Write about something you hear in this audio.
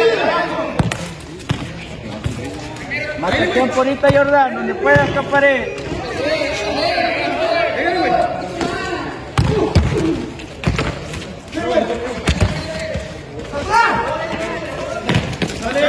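A ball is kicked hard on a hard court, with sharp thuds.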